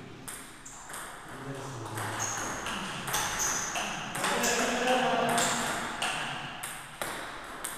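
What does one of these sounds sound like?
A ping-pong ball clicks back and forth off paddles and a table in a steady rally.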